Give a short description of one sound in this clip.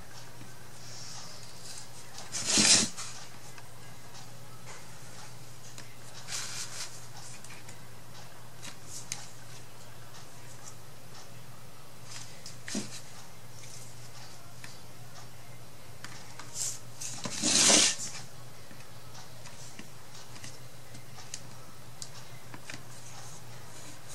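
A paintbrush brushes softly across a frame.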